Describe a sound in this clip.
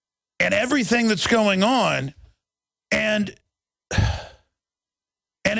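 A middle-aged man speaks forcefully into a close microphone, in short bursts.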